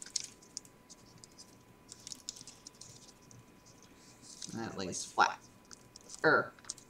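Paper crinkles and rustles softly as it is folded by hand.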